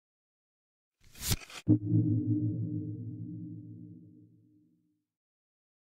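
A swooshing game sound effect plays as a card is revealed, followed by a low ringing tone that fades.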